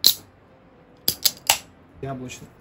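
A can's tab snaps open with a sharp hiss.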